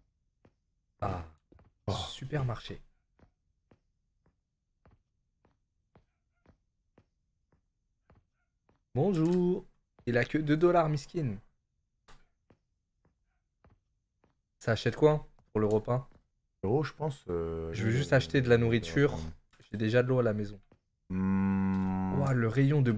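Two young men talk with animation close to a microphone.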